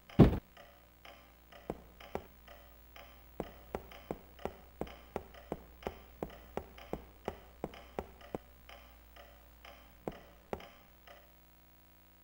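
Footsteps tread steadily across a wooden floor.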